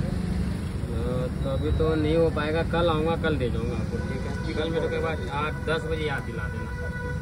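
A man talks into a phone nearby.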